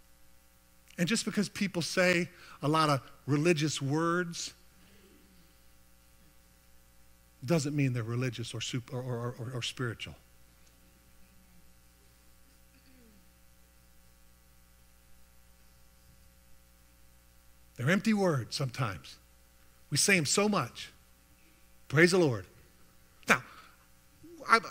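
A middle-aged man speaks with animation through a headset microphone, with pauses between phrases.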